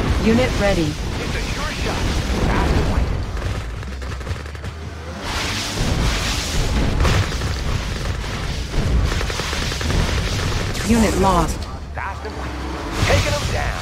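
Laser weapons zap in bursts.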